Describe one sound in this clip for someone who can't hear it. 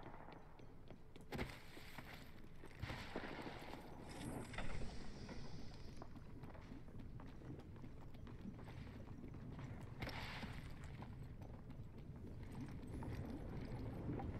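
Quick footsteps run over gravel and rubble.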